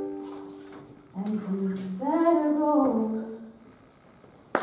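A ukulele is strummed and rings out.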